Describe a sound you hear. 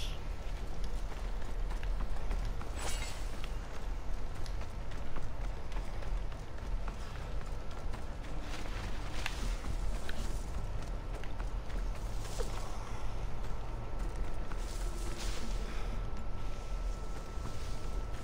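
Footsteps run over gravel and stone.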